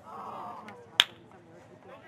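A ball is kicked with a sharp thump.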